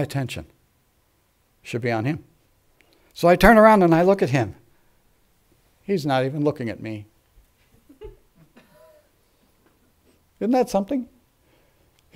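An elderly man speaks through a microphone in short, measured phrases, with pauses between them.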